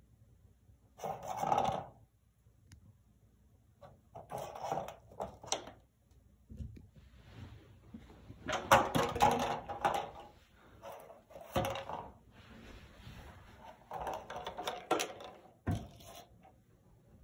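A plastic treat ball rattles and knocks as a cat bats it across the floor.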